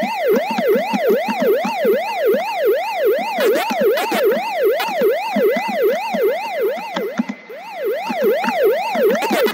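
Electronic game blips chirp rapidly.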